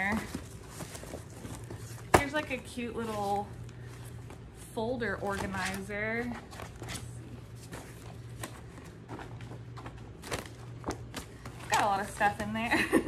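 A young woman talks close by, casually and with animation.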